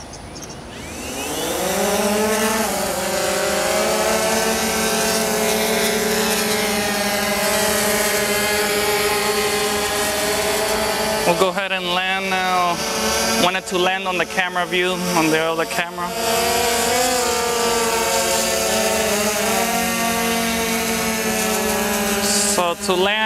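A drone's propellers whir up to a loud, steady high buzz that shifts in pitch as it flies.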